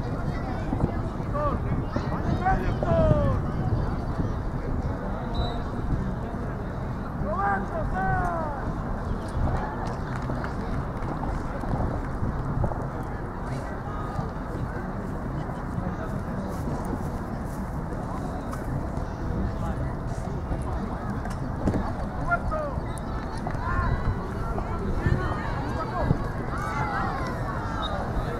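Spectators shout and cheer from the sideline outdoors.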